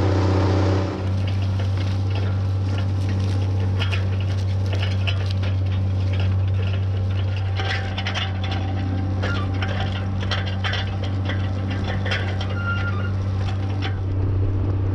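Soil and crop stubble crackle and rustle under a tillage tool.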